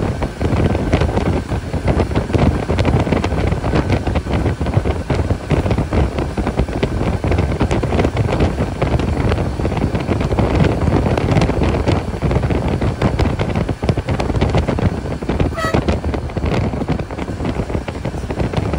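Tyres hum and rumble on the road.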